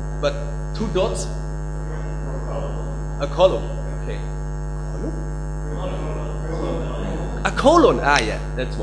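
A young man speaks with animation through a microphone.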